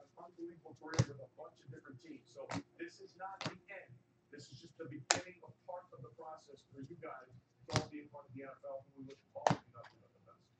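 Trading cards snap and slap as they are flipped through by hand.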